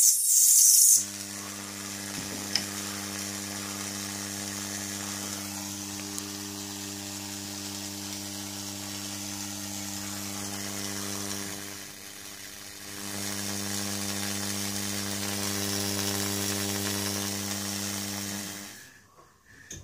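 An electric spark buzzes with a steady low hum.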